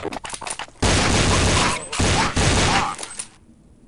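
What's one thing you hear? Gunfire bursts out loudly.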